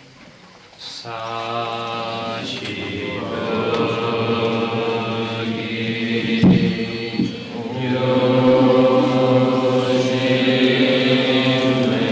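An elderly man chants in a deep, steady voice through a microphone.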